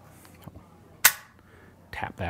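A pistol's metal mechanism clicks sharply once.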